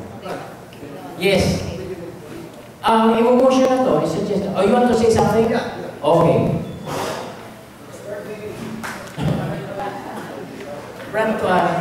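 A man speaks with animation through a microphone and loudspeakers in an echoing room.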